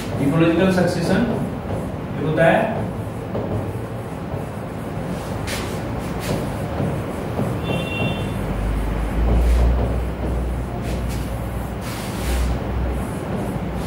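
A marker squeaks and taps while writing on a board.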